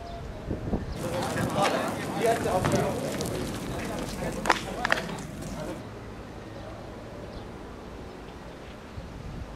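Young men shout in the street outdoors.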